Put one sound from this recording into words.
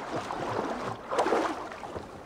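Water splashes loudly as someone climbs out onto land.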